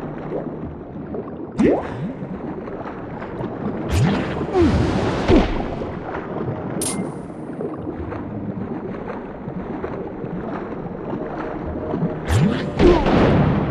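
Water whooshes and bubbles as a swimmer darts through it underwater.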